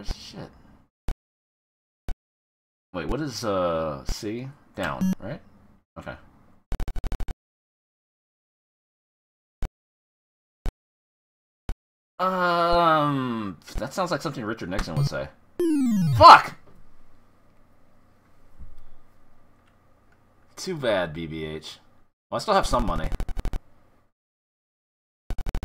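An arcade quiz game gives short electronic bleeps.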